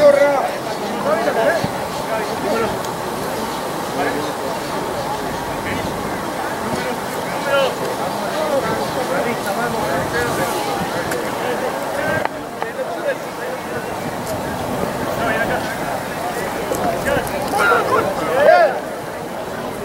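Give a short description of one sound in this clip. Young women shout and call to each other across an open field.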